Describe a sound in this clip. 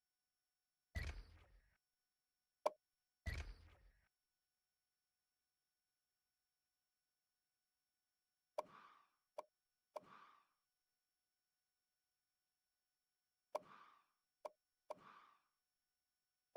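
Game menu sounds swoosh as the menus change.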